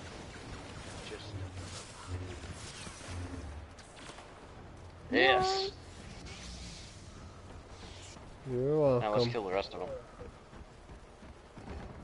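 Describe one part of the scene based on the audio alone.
Blaster shots zap and crackle.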